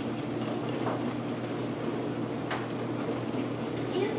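A knife cuts through a soft cake.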